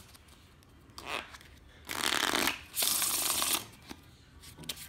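A deck of cards riffles as it is shuffled.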